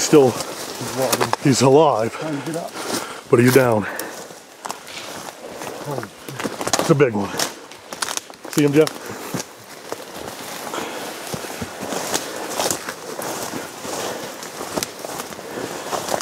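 Footsteps rustle and crunch through dry brush.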